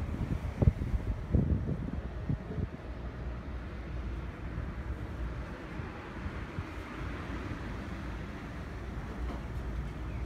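Tyres hum on the road as the car drives along.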